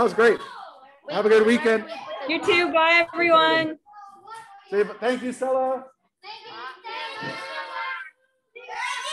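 Children call out excitedly in a room.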